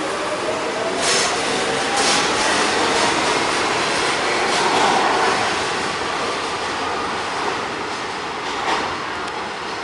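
Train wheels clack sharply over rail joints.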